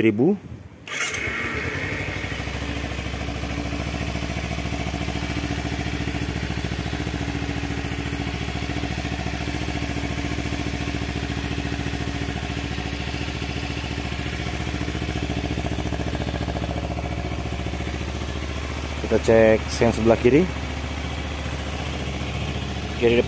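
A motorcycle engine idles steadily close by.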